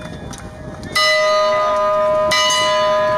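A large bell rings loudly and keeps ringing.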